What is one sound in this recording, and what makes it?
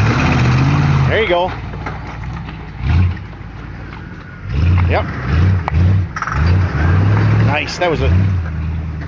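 Tyres grind and scrape over loose rocks.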